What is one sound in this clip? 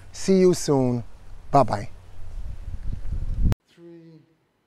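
A middle-aged man speaks close by, with animation, outdoors.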